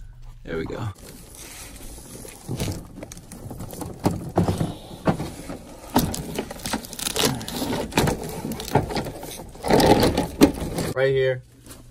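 A plastic panel knocks and scrapes as it is handled.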